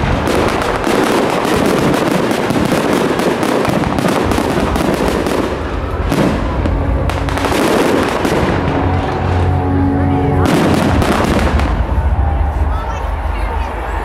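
Fireworks boom with deep thuds.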